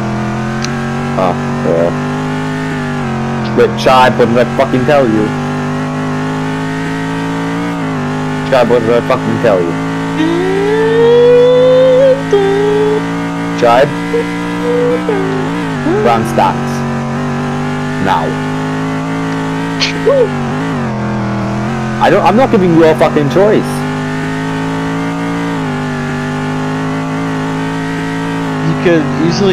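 A racing car engine drones steadily, its pitch shifting as the car speeds up and slows.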